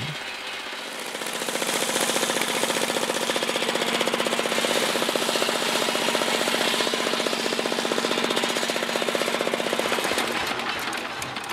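An engine runs with a steady chugging rumble.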